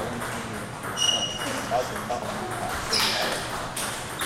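Sneakers squeak briefly on the floor.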